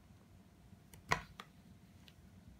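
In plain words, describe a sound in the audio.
Plastic tiles click against a table.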